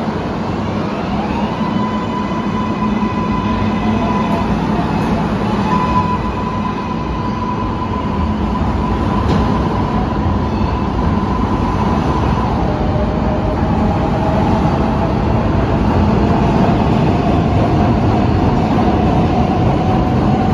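A subway train's electric motors whine and rise in pitch.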